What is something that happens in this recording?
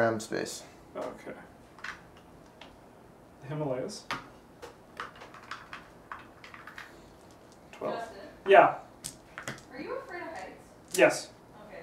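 Game pieces and cards clack and shuffle on a table.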